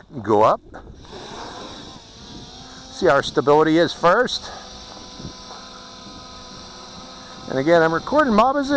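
A small drone's propellers whine steadily as it takes off and hovers.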